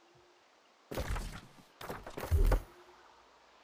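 Menu buttons click softly.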